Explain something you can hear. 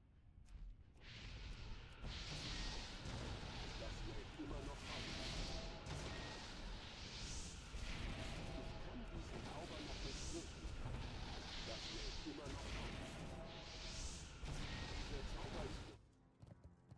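Magic blasts and explosions burst in quick succession.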